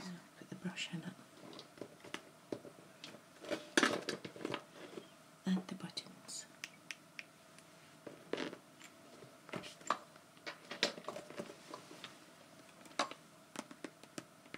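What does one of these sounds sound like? Small objects tap and clink against glass.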